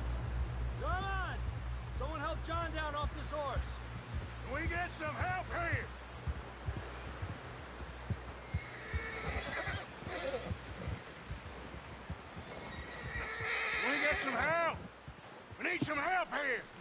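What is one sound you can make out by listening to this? A horse gallops through snow with muffled hoofbeats.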